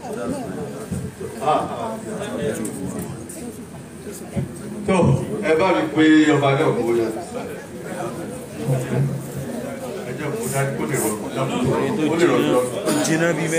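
A crowd of men and women chatter and talk nearby.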